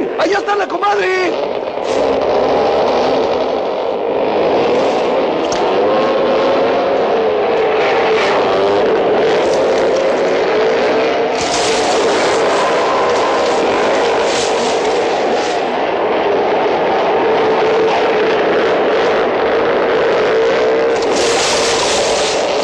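A motorbike engine revs loudly on a dirt track.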